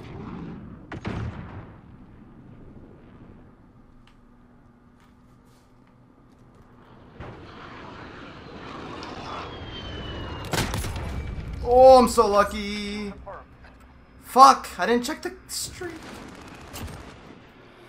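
Shotgun blasts boom from a video game.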